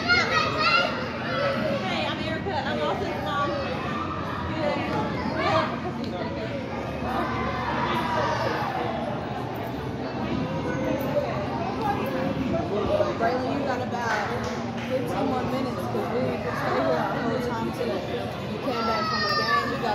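Children shout and chatter nearby in a large echoing hall.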